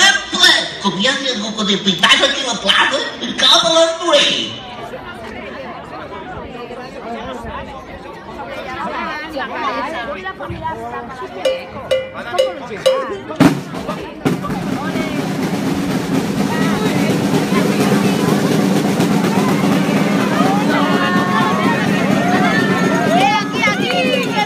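A crowd of people chatters and calls out loudly outdoors.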